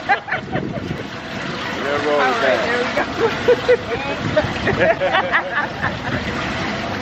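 Young women talk and laugh close by.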